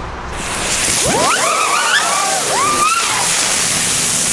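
Fireworks whistle and screech, rising and falling in pitch.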